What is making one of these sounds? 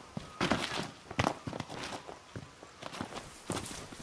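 A man scrambles over rock with scraping steps.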